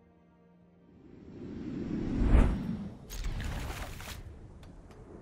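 A card game's sound effect swells into a loud whoosh.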